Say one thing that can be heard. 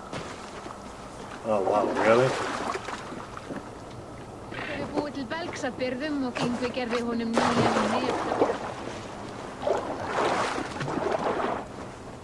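Water splashes and laps as a figure wades through a river.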